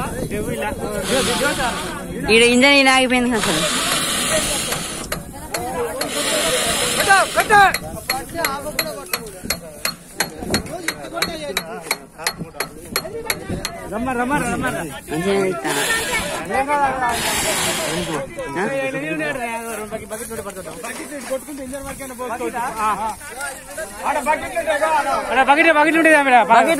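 A fire crackles as burning straw blazes.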